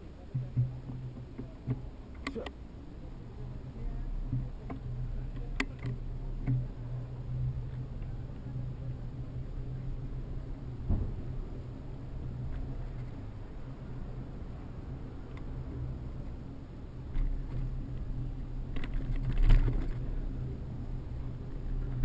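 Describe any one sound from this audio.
Wind rumbles against a microphone on a moving bicycle.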